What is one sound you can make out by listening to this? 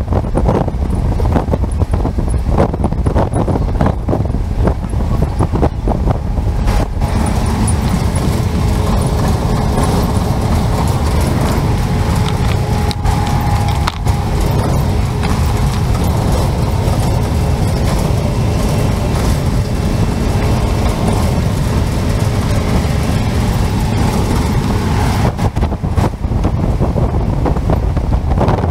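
Wind roars loudly against an open window.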